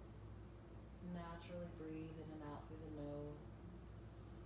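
A woman speaks calmly and softly nearby.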